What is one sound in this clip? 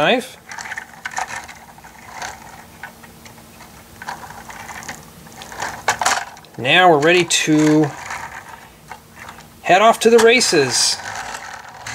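A small plastic toy truck rolls softly across a hard surface.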